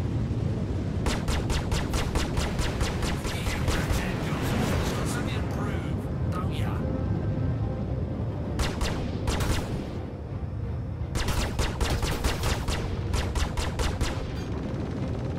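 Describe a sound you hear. Laser cannons fire in rapid bursts of sharp zaps.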